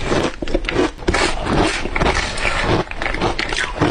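A metal spoon scrapes against a plastic bowl.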